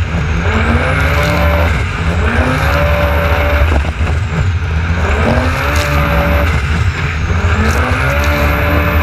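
An engine roars and revs up again and again.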